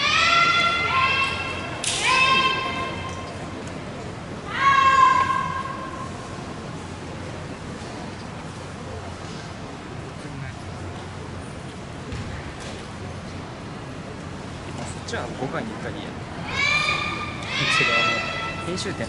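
Young women shout loud, drawn-out cries in a large echoing hall.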